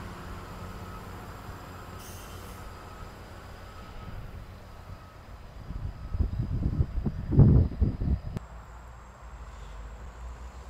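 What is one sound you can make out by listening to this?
A diesel engine of a road grader rumbles steadily nearby.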